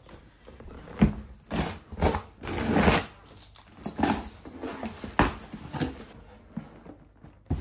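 A cardboard box rustles and scrapes as it is handled and opened.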